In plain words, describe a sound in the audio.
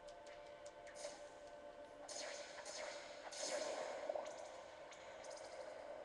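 A video game sword swishes through the air in a fight.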